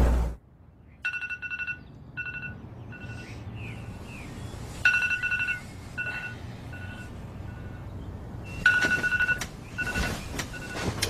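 A phone alarm beeps repeatedly in short bursts.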